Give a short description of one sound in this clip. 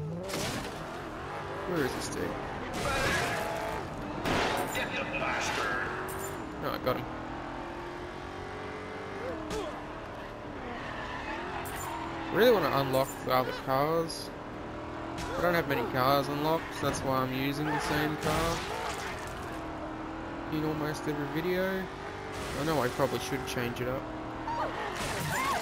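A video game car engine revs and roars as it speeds along.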